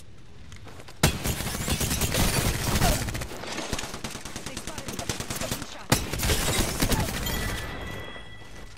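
Rapid automatic gunfire bursts loudly.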